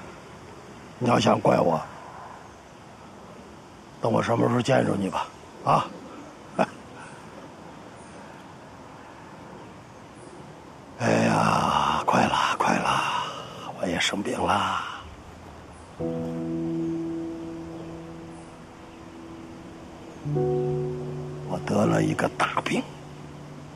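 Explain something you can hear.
An elderly man speaks slowly and sadly, close by.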